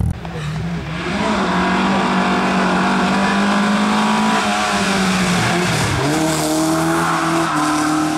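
A rally car's engine roars loudly as it drives up a winding road.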